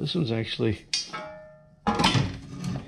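A metal part rings briefly after being knocked.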